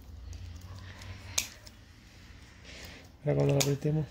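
Scissors snip through roots.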